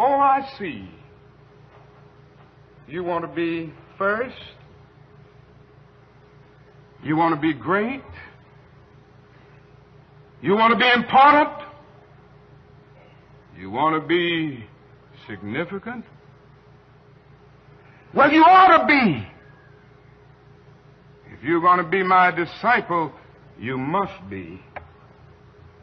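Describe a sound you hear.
A man speaks slowly and forcefully into a microphone, with long pauses between phrases.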